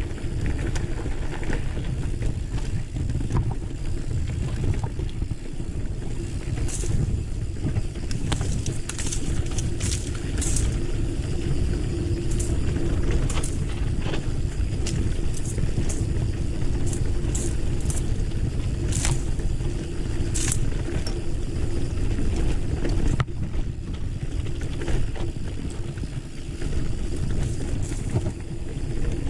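Mountain bike tyres crunch and roll over a dry dirt trail.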